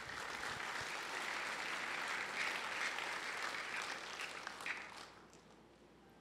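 A large crowd applauds steadily, then the clapping fades away.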